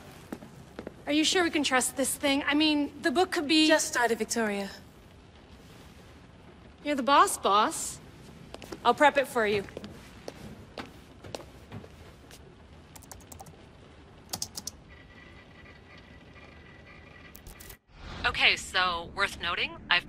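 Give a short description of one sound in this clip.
A woman asks worried questions and speaks with animation, close.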